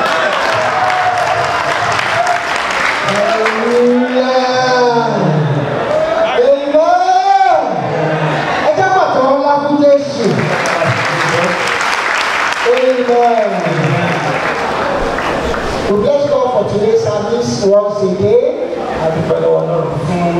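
Two men sing together through microphones and loudspeakers in an echoing hall.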